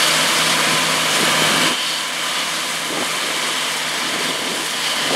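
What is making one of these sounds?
A combine harvester engine roars steadily nearby.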